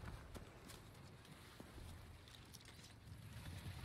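Leafy plants rustle as someone pushes through them.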